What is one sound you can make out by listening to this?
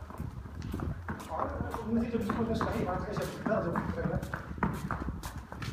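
A horse's hooves shuffle and thud on a soft floor.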